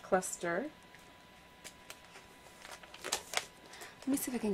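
A stiff album page flips over with a plastic rustle.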